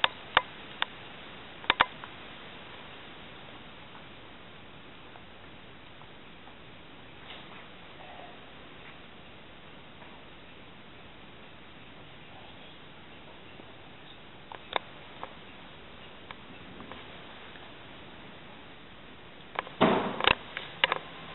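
Fabric rustles as a woman arranges things in a coffin.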